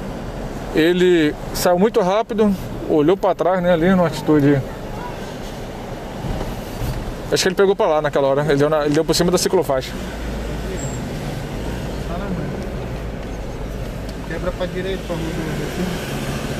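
A man talks in short bursts inside a car.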